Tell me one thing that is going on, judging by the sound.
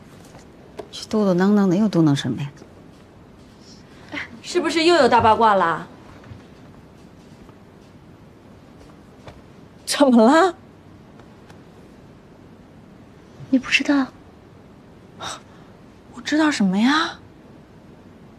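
A young woman speaks with animation nearby.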